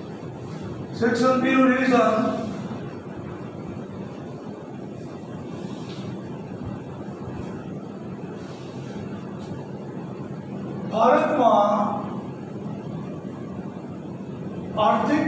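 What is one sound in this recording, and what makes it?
A middle-aged man speaks in short, calm phrases nearby.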